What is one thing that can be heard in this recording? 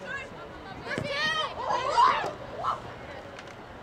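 Young women shout to each other across an outdoor playing field.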